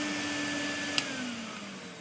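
A plastic switch clicks off.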